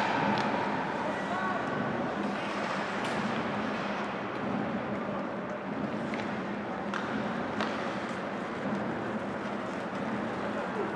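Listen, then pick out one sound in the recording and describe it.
Hockey sticks clack against the puck and each other.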